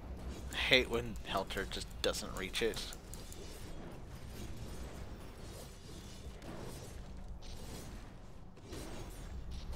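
Game spell effects and blasts crackle and boom in a fight.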